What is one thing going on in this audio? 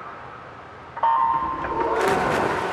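An electronic start signal beeps once.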